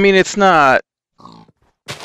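A pig squeals as it is struck.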